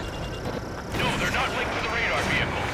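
A missile launches with a whoosh.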